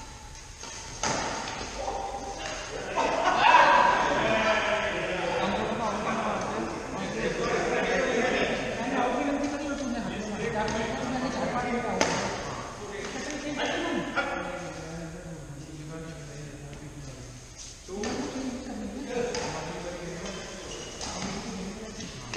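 Men talk and call out across a large echoing hall.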